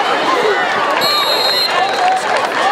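A referee's whistle blows once, sharply.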